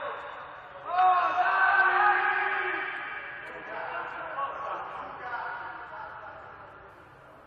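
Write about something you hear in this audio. Men shout loudly across a large echoing hall.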